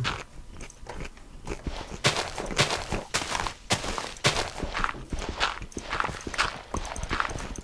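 Footsteps crunch steadily over gravel and grass.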